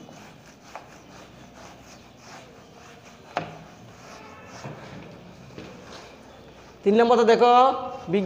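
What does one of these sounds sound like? A duster rubs across a whiteboard.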